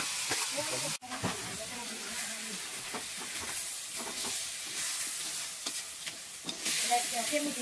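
Chopsticks scrape and clatter against a metal wok.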